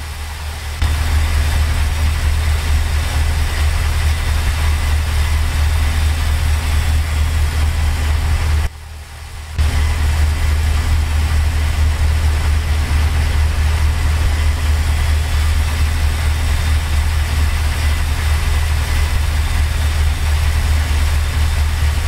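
A truck engine drones steadily with a deep hum.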